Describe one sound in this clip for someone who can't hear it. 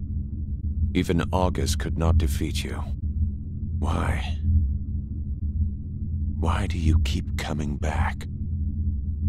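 A man speaks slowly in a deep voice.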